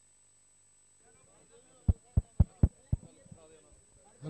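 A crowd of men talks and calls out nearby.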